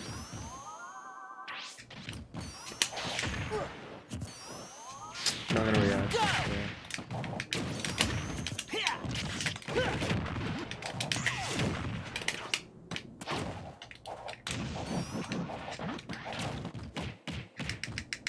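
Video game fighters trade punches and blasts with sharp hit effects.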